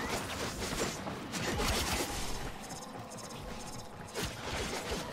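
Heavy blades swing and slash with sharp whooshes and metallic clangs.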